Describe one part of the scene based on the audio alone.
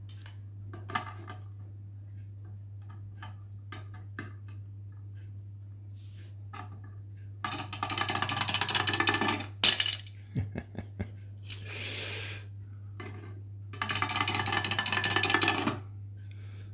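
A small hard object scrapes across a slate surface.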